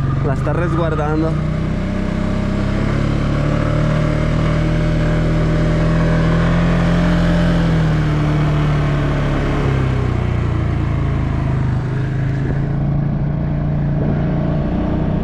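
An engine hums steadily up close.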